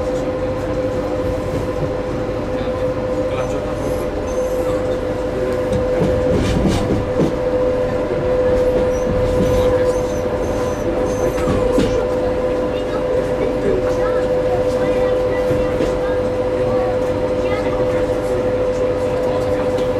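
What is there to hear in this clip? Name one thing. A steady electric whine hums inside the train carriage.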